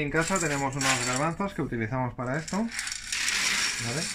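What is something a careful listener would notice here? Dried beans rattle in a metal pot.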